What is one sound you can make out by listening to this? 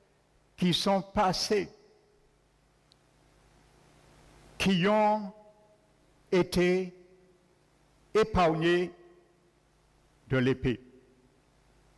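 A man speaks with emphasis into a microphone over a loudspeaker, in short bursts with pauses.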